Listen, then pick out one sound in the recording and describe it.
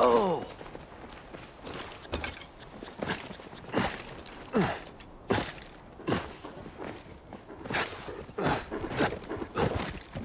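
Footsteps run quickly across grass.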